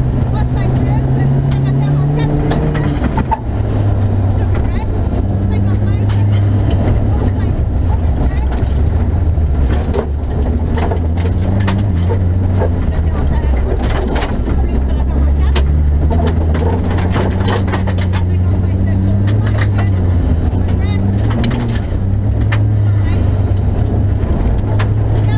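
A young woman reads out pace notes over an intercom.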